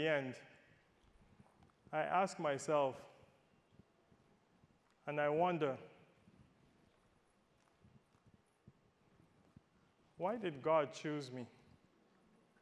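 A man speaks calmly through a microphone in short phrases with pauses.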